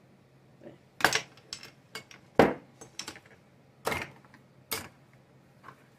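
A plastic citrus squeezer clacks and knocks on a hard surface.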